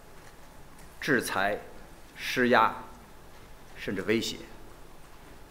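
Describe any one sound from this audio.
A middle-aged man speaks calmly and deliberately into a microphone, with pauses between phrases.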